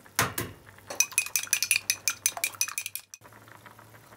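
Chopsticks beat eggs quickly, clicking against a bowl.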